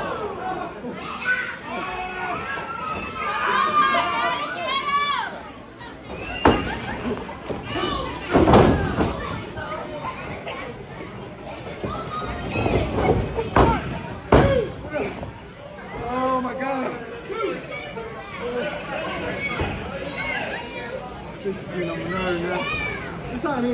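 A crowd of spectators shouts and cheers nearby in an echoing hall.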